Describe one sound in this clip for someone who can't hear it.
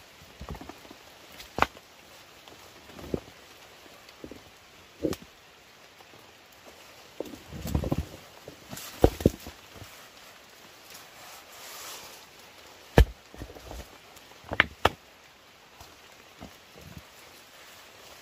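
Leaves and stems rustle and snap close by as plants are pulled.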